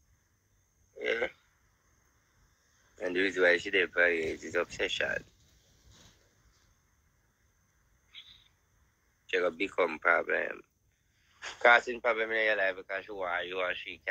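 A man talks with animation close to a phone microphone, in bursts with pauses.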